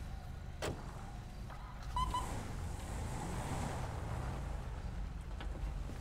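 A car engine hums as a car drives off along a road.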